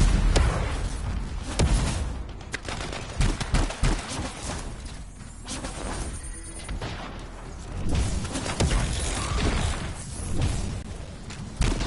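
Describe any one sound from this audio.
Guns fire in short bursts with sharp cracks and booms.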